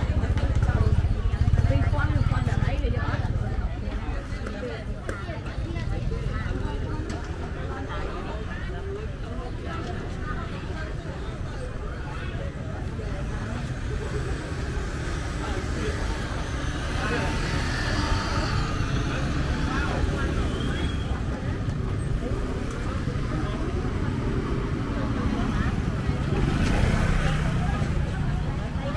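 Motorbike engines hum past at close range.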